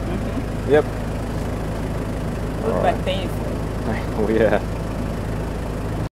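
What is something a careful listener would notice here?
A car engine hums steadily inside a vehicle.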